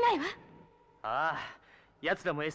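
A young man answers eagerly.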